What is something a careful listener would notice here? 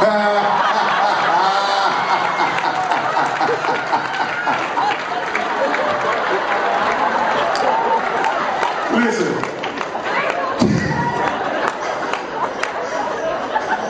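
A crowd cheers and claps in a large hall.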